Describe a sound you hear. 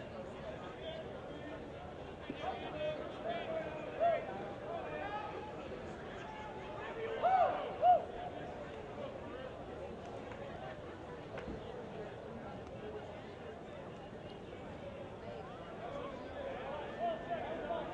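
A crowd in the stands of an outdoor stadium murmurs and calls out.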